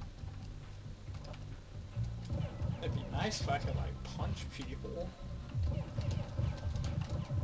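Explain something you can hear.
Video game music plays with a low, thumping beat.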